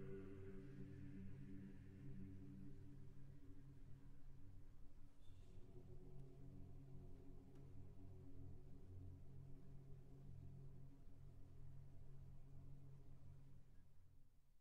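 A large mixed choir sings slowly and softly in a reverberant hall.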